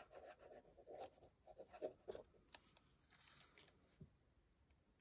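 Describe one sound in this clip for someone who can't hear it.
Paper rustles and crinkles under a hand.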